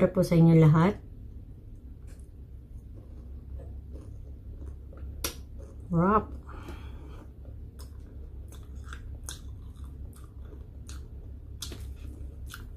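A woman chews and smacks her lips while eating.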